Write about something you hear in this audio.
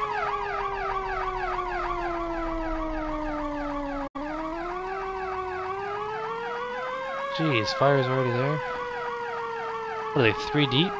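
A fire engine siren wails rapidly up and down.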